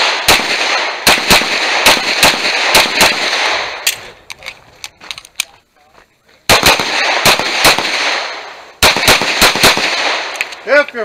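Pistol shots crack in quick bursts outdoors, with a loud echo.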